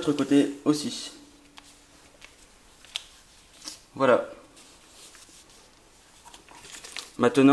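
Paper crinkles softly as it is folded.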